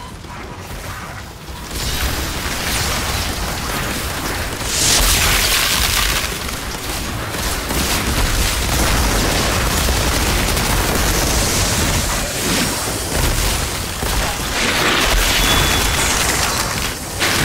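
Monsters roar and screech.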